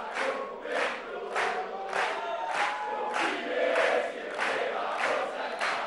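A crowd of men and women chants together loudly.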